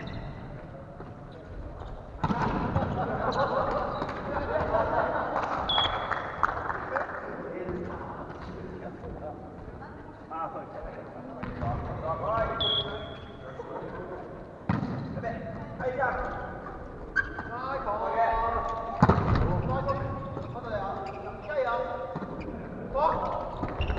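Young men and women call out and talk loudly across a large echoing hall.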